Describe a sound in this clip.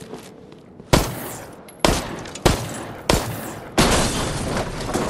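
A gun fires several sharp, loud shots.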